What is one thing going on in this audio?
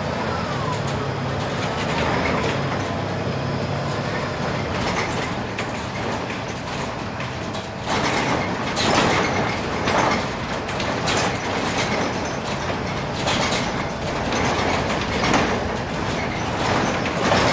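A bus body rattles and creaks over the road.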